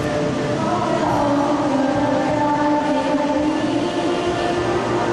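A large choir sings together in a big echoing arena.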